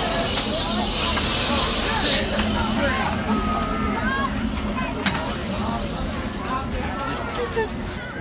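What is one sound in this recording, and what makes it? A steam locomotive hisses steadily close by.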